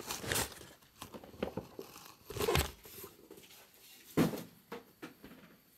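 Cardboard boxes knock and shuffle as they are moved.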